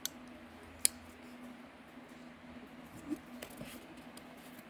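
A folding knife clicks and rattles as it is handled.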